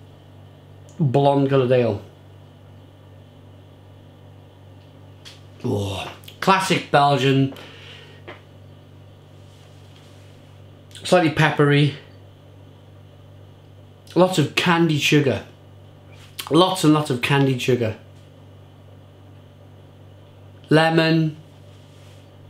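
A man speaks calmly and close by, in short bursts with pauses.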